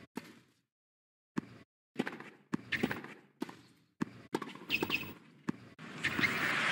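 Tennis balls are struck with sharp pops, echoing across an open stadium.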